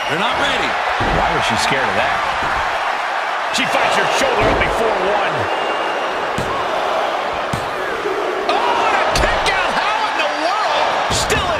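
Heavy thuds of bodies hit a wrestling mat.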